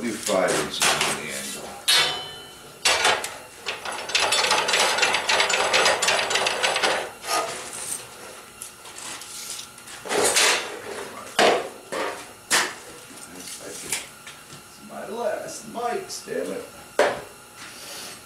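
Metal bars clank and knock against a steel table.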